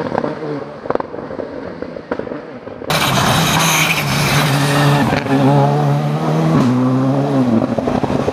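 A rally car engine roars and revs hard close by.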